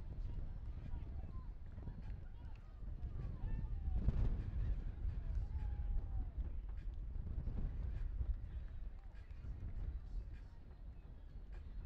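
Wind rumbles steadily against the microphone outdoors.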